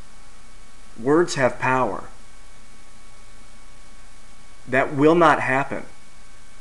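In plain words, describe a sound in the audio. A young man speaks in short bursts close to the microphone, with pauses between.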